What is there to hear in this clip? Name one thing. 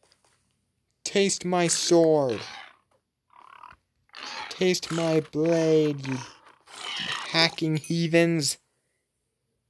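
A large beast grunts and squeals loudly.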